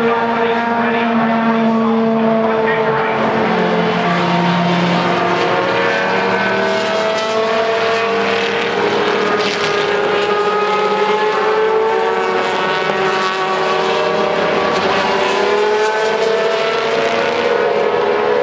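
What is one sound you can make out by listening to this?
Race car engines whine and shift gears as cars pass one by one.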